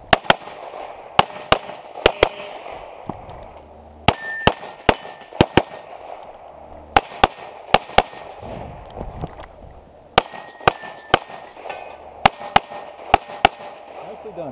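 A pistol fires sharp, loud shots in quick pairs outdoors.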